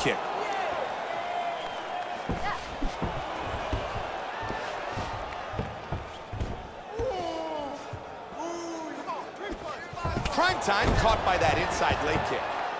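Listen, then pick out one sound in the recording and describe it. Kicks and punches land with dull thuds.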